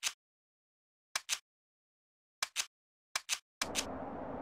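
Short menu clicks sound one after another.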